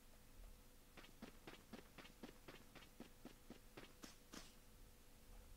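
Quick footsteps patter along a path.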